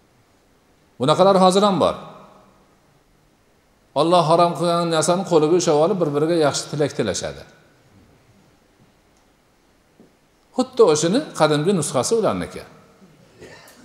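An elderly man speaks slowly and solemnly into a microphone, with pauses between phrases.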